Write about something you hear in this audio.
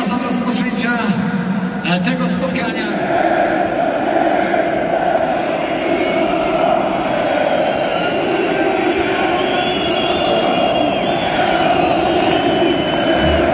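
A large stadium crowd chants and sings loudly in unison, echoing in the open air.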